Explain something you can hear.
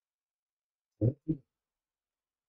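A tennis ball bounces with dull thuds.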